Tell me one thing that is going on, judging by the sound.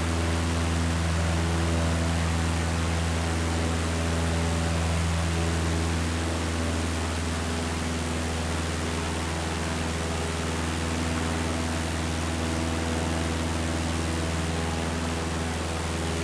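A small propeller plane's engine drones steadily, with a constant low hum.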